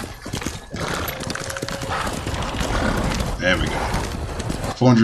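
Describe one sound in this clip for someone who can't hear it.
Horse hooves thud on snow at a gallop.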